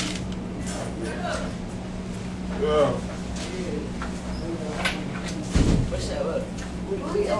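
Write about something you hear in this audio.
A man talks casually close to the microphone.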